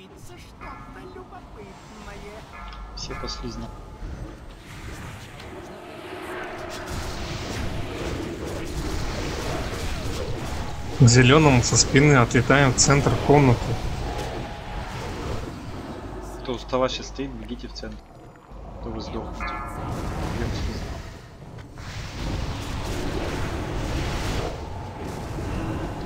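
Spell effects crackle and whoosh amid clashing combat sounds.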